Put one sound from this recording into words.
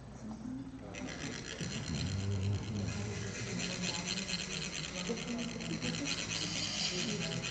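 A metal funnel is rasped rapidly, trickling sand with a fine scratchy buzz.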